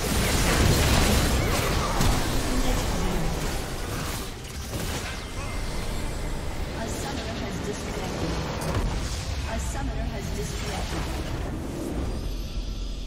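Magic spells crackle and whoosh in a busy fight.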